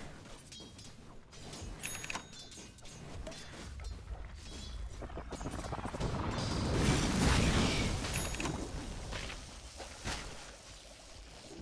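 Weapons strike in quick, sharp hits.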